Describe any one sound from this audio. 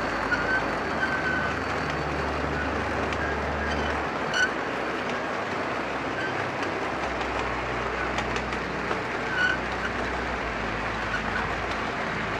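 Model train wheels click and squeal on the rails.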